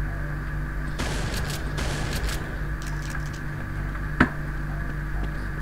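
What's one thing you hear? Shotgun blasts boom in short bursts.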